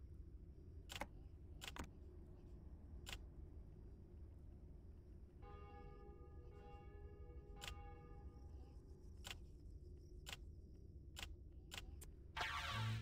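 Short, sharp game menu clicks sound now and then.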